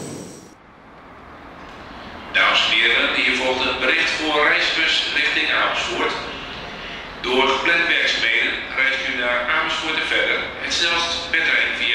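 Train wheels clatter over switches as a train slowly approaches.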